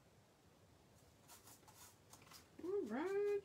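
A hand rubs and scrapes lightly on paper.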